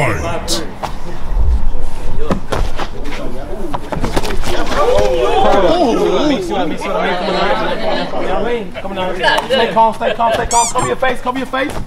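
Boxing gloves thud against a body and gloves in quick punches.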